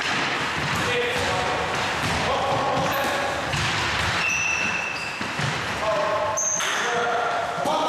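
Young men shout to each other during play.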